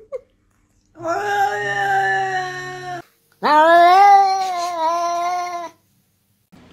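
A cat meows loudly and long.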